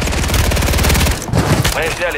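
An automatic gun fires in a rapid burst.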